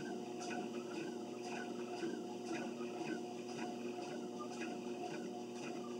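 Footsteps thud in a steady rhythm on a treadmill belt.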